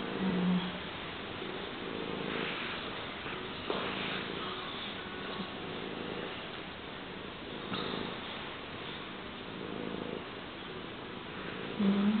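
A cat purrs steadily up close.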